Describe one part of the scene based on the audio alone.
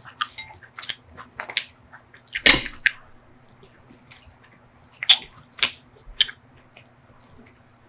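A crisp waffle cone crackles in gloved fingers.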